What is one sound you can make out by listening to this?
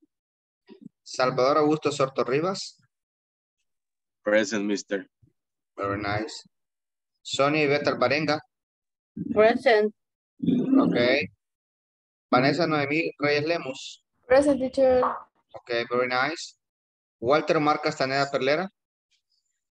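A young man speaks calmly through an online call, in short phrases.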